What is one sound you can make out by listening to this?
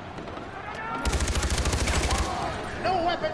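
A submachine gun fires a rapid burst at close range.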